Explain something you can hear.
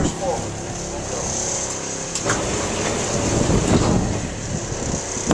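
A machine hums steadily nearby.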